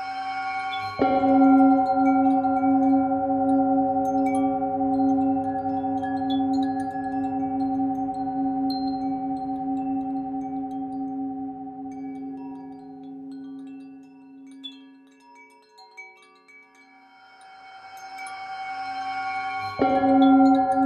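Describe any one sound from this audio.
A metal singing bowl is struck and rings out sharply.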